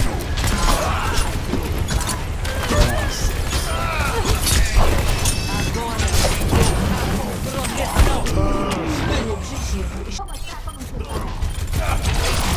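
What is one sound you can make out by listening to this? Rapid gunfire crackles in a video game.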